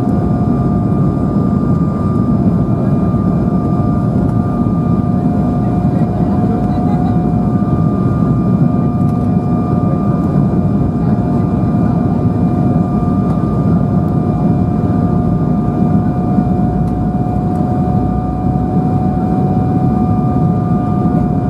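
Jet engines roar steadily with a high whine, heard from inside an airliner cabin.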